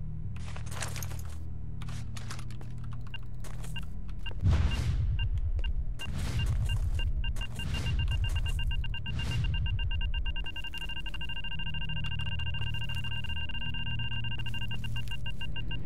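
A low rumble echoes through a tunnel.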